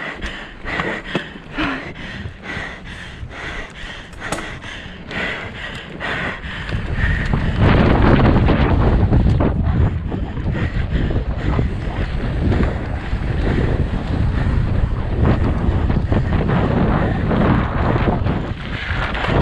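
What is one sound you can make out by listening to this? Bicycle tyres rattle and crunch over a rough dirt trail.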